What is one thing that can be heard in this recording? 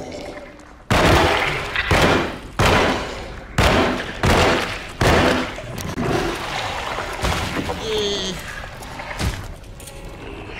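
A creature snarls and screeches.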